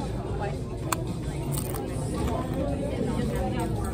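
Tortilla chips crunch as a woman chews.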